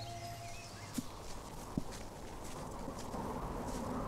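Footsteps crunch on dry leaves and gravel.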